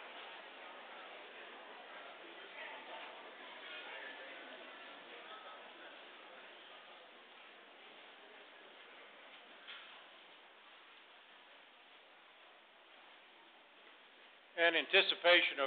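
A congregation murmurs quietly in a large echoing hall.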